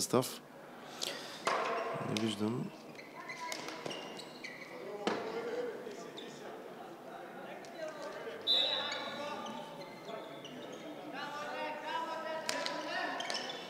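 A stick strikes a ball on a hard floor with sharp clacks.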